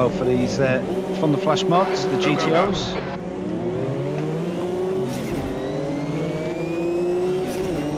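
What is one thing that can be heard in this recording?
A racing car engine roars and whines, rising and falling in pitch as it shifts gears.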